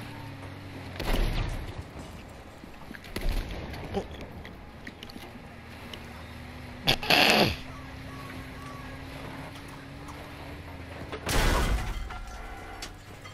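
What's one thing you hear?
Explosions boom nearby.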